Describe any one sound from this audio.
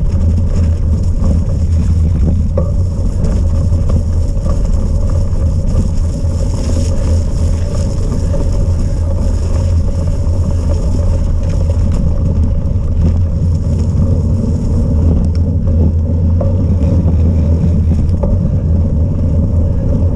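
Wind roars steadily against a microphone outdoors.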